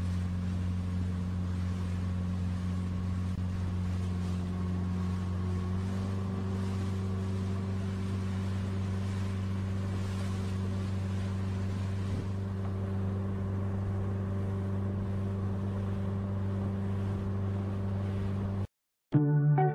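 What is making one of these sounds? A boat's outboard motor drones steadily.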